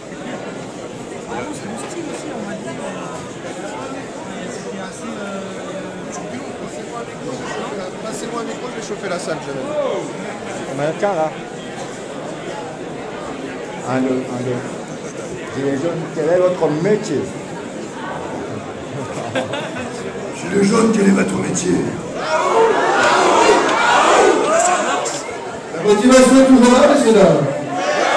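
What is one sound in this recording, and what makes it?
Men talk close by.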